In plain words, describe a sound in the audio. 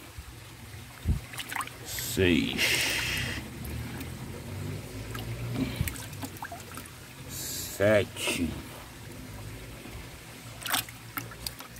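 Water sloshes and splashes as a hand stirs it in a bucket.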